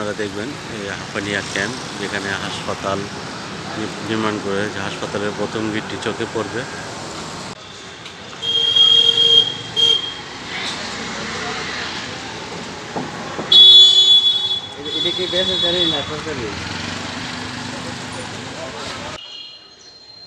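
Motorcycles and auto-rickshaws drive past on a busy street.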